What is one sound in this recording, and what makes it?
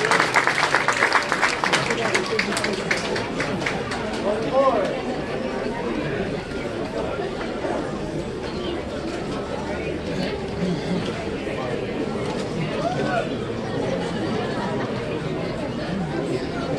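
A brass band plays outdoors.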